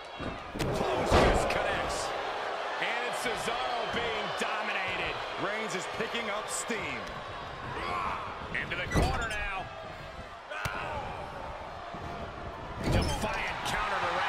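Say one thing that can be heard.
A body slams heavily onto a wrestling ring mat.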